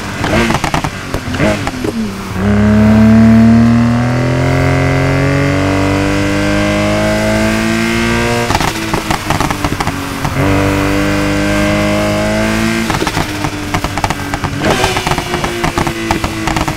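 A car exhaust pops and crackles in rapid bursts.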